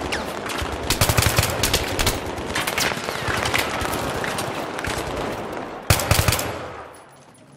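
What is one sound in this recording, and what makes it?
Rapid gunfire rattles in sharp bursts.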